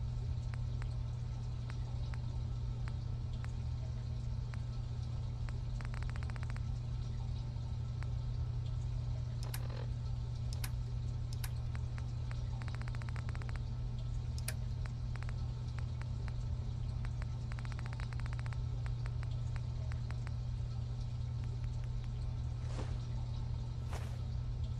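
Soft menu clicks tick rapidly as a list is scrolled.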